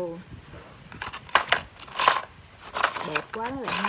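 A plastic toy truck rattles and scrapes on concrete.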